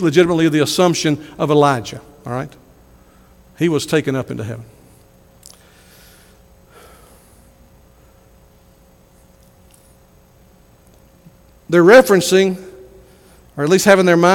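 A middle-aged man speaks with animation through a microphone in a reverberant hall, pausing between phrases.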